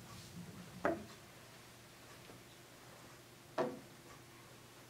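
A billiard ball drops and lands with a dull thud on a pool table.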